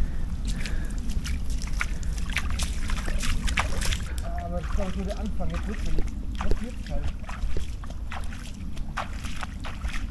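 Bare feet splash through shallow water.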